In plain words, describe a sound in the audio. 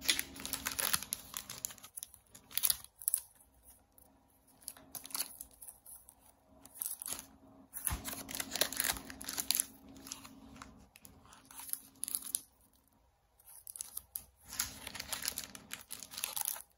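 Banknotes flutter and riffle under a thumb.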